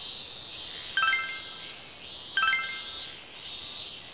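A bright electronic chime rings twice.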